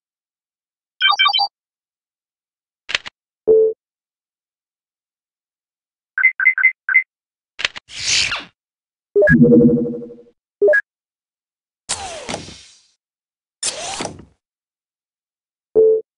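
Short electronic beeps and blips sound as menu buttons are clicked.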